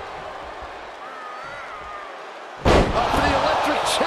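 A body slams onto a wrestling ring mat.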